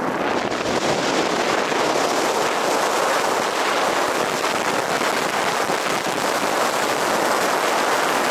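Strong wind rushes loudly and steadily past a wingsuit in flight.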